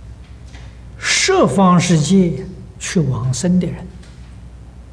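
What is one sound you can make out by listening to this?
An elderly man speaks slowly and calmly into a microphone.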